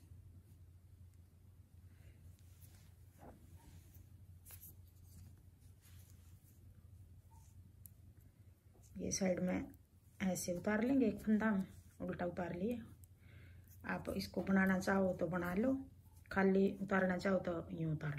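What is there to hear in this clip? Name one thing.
Metal knitting needles click softly against each other.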